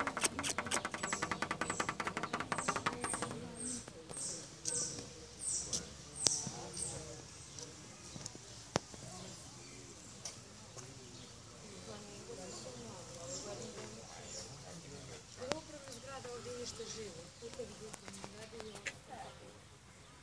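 Otters squeak and chirp in high, short calls.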